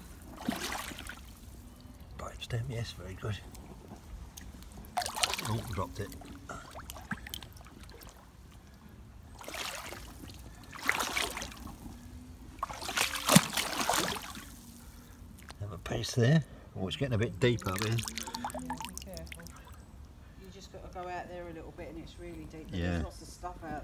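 A shallow stream trickles over stones.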